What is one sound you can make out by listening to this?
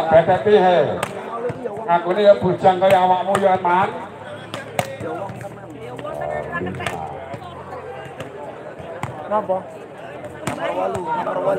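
A volleyball is struck by hand with sharp slaps.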